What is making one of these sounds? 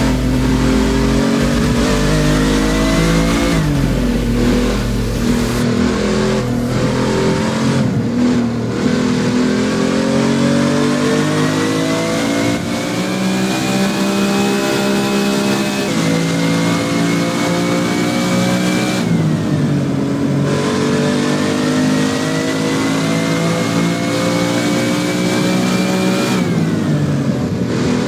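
A car engine roars as it accelerates, rising in pitch and dropping sharply at each gear change.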